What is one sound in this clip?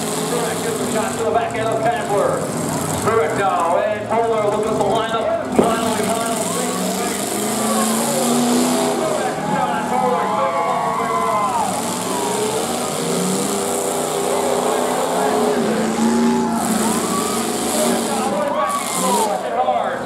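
Car engines rev and roar loudly nearby.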